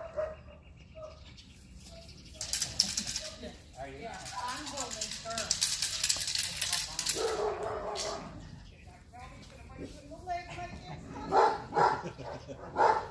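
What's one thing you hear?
An older man shouts commands to a dog outdoors.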